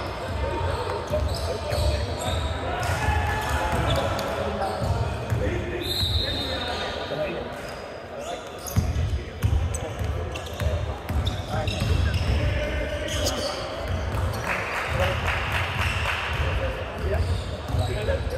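Players shout to each other across the court.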